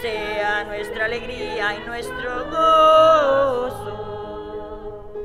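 A woman sings into a microphone in an echoing room.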